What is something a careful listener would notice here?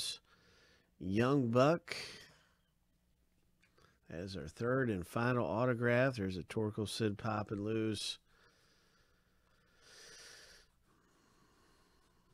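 Stiff cards slide and flick against each other.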